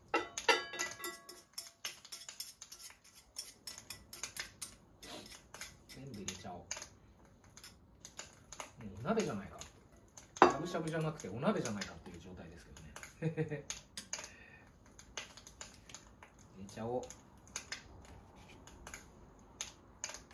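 Metal utensils clink and scrape against a small pot.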